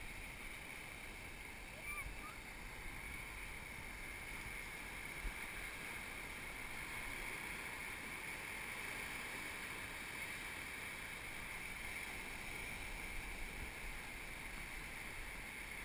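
Waves wash up and fizz over the sand, close by.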